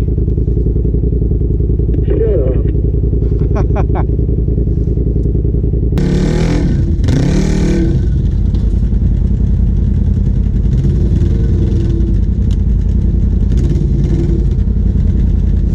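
An off-road vehicle's engine rumbles steadily up close.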